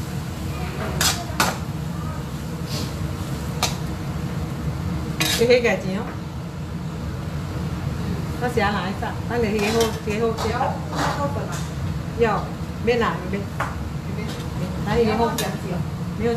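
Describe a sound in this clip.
A metal ladle clinks and scrapes against a wok.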